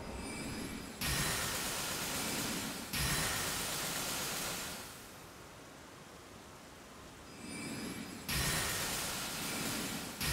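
Crackling magical blasts burst loudly, again and again.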